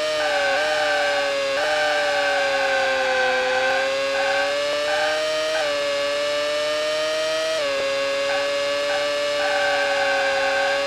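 A racing car engine whines at high revs, dropping briefly with each gear change.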